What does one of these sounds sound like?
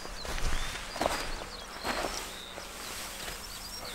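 Footsteps crunch on dry, broken soil.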